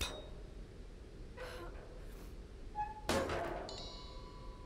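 A metal bar pries and creaks against wood.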